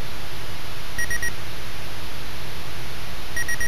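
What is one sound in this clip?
Short electronic beeps sound in quick bursts.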